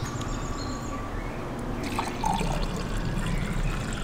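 Liquid pours from a clay jug into a glass.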